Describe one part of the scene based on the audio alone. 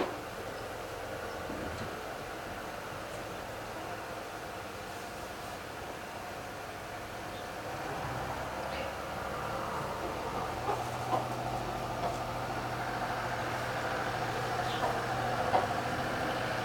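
Chickens cluck and peep softly nearby.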